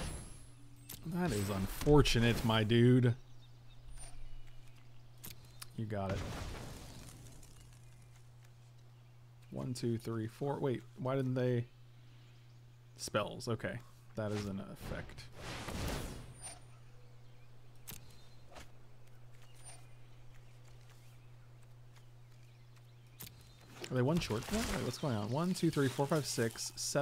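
A man talks calmly and casually into a close microphone, in bursts with pauses.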